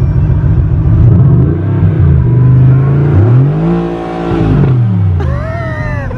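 A car engine revs up and settles back down.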